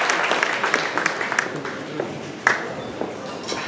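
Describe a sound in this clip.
An audience applauds in a large hall, then the clapping fades.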